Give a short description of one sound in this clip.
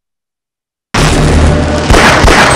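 Electric sparks crackle and zap.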